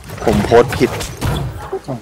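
A sword slashes into a creature.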